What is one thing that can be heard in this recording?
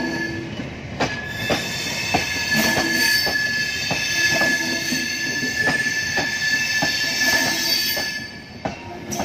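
Train wheels squeal steadily against the rails.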